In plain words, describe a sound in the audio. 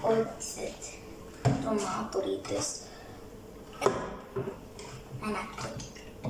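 A plastic bottle clicks and knocks as a child handles it.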